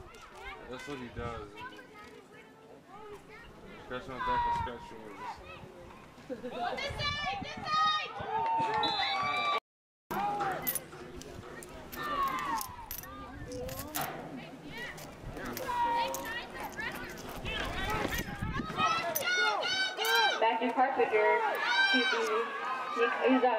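A crowd of adults and children shouts and cheers outdoors.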